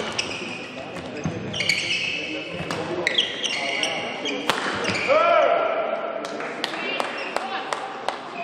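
Shuttlecocks are struck sharply with rackets in a fast rally.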